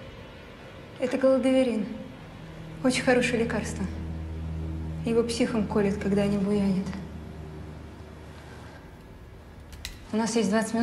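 A young woman speaks quietly and tensely close by.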